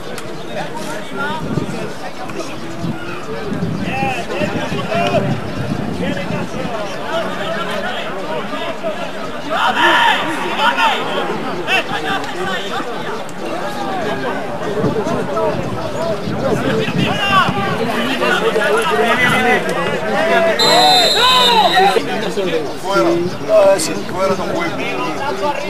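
Football players shout to each other across an outdoor pitch.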